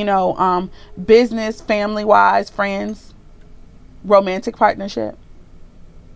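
A woman speaks calmly and close by, in short phrases.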